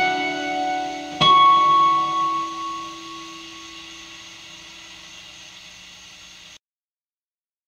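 An acoustic guitar plays chords, then a final chord rings out and slowly fades.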